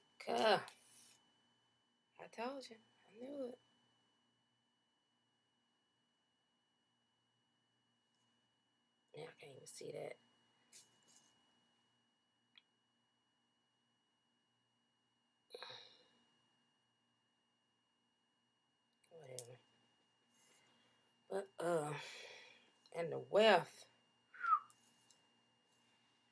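A plastic comb scrapes through hair.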